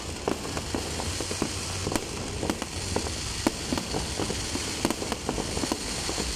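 Fireworks crackle and pop overhead in quick bursts.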